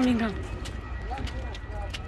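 Footsteps tap on paving nearby.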